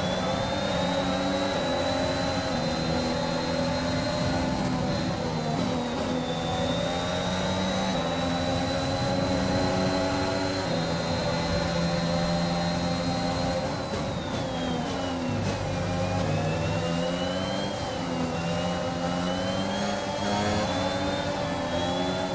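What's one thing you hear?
A racing car engine screams at high revs, rising and dipping in pitch through gear changes.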